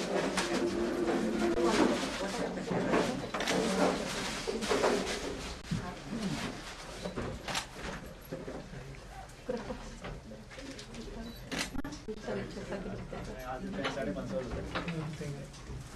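Several women murmur and talk quietly nearby.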